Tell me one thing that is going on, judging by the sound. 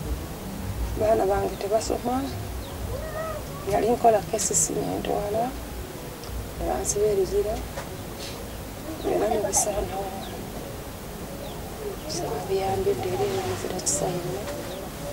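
A woman speaks quietly and slowly, close by.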